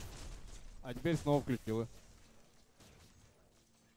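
Magic blasts crackle and burst in a fight.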